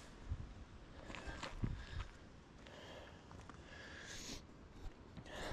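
An older man speaks quietly close to the microphone.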